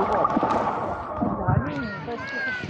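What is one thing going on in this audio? Water gurgles and sloshes, heard muffled from underwater.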